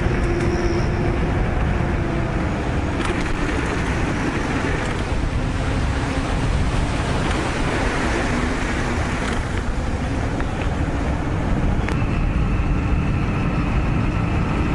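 Wind rushes loudly past a moving bike.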